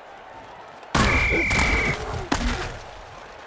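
Armoured players crash together in a heavy tackle.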